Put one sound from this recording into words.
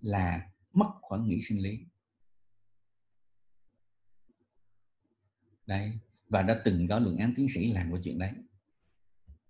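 A man speaks calmly through a microphone, as if lecturing.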